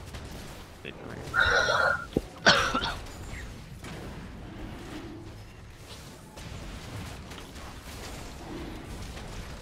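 Spell effects and blows crackle and burst in a game fight.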